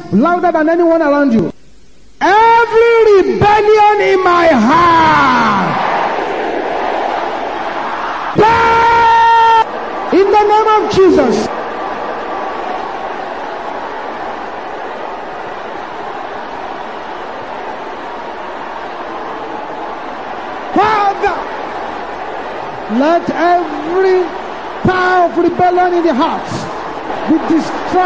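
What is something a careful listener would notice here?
A man prays loudly and with fervour into a microphone, in short bursts.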